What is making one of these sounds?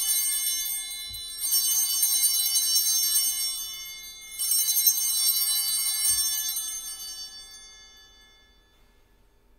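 Small bells ring in bright, shimmering bursts and slowly die away.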